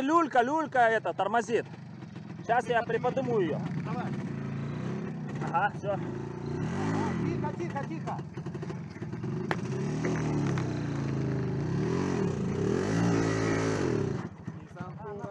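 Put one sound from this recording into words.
A motorcycle engine rumbles and revs close by.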